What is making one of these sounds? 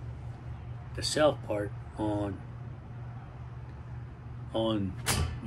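An older man speaks calmly and close by, in short bursts with pauses.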